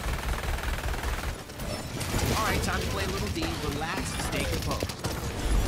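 Energy guns fire with buzzing, crackling zaps.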